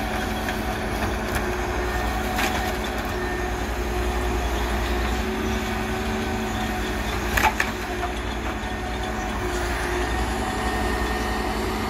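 A diesel engine hums steadily.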